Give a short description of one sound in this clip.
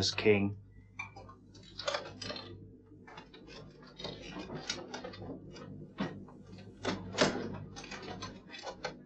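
A bearded man speaks in a deep, slow voice.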